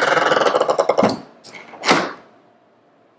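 A door shuts with a heavy thud.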